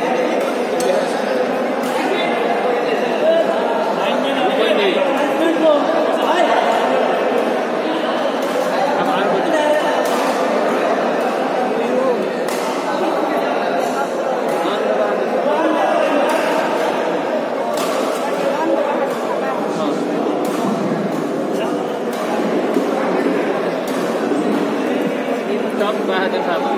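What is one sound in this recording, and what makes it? A crowd of men chatter and call out loudly in a large echoing hall.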